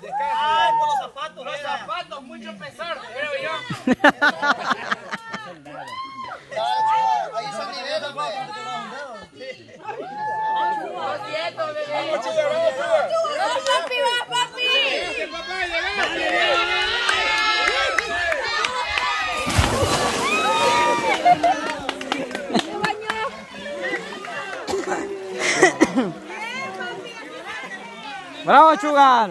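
A group of young men shout and cheer excitedly nearby.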